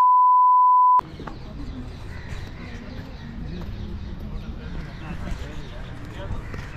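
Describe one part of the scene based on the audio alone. Several people talk at a distance outdoors.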